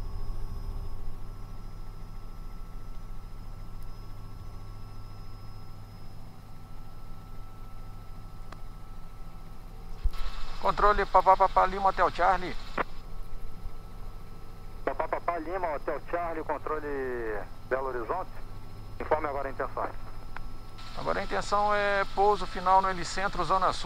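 A helicopter's engine and rotor drone steadily.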